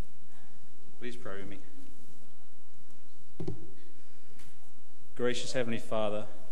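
An older man speaks into a microphone over loudspeakers in a large echoing hall.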